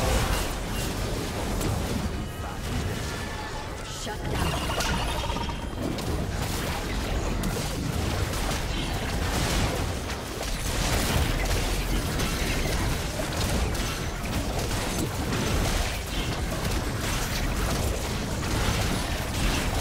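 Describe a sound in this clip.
Spell blasts and magical impacts crackle and boom in a fast fight.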